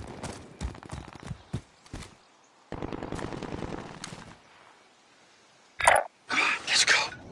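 Metal gear clicks and rattles as a gun is handled.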